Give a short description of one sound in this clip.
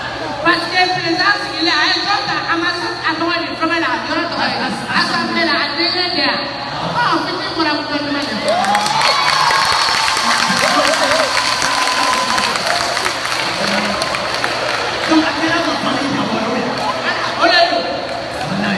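Young men speak with animation through microphones over loudspeakers in an echoing hall.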